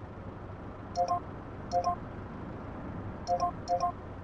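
A ticket machine keypad beeps in short pairs of tones.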